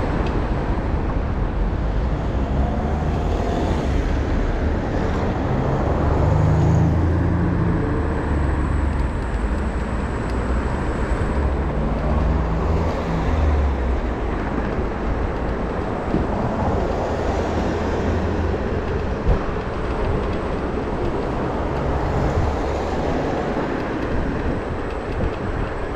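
Wind rushes and buffets loudly past a moving rider.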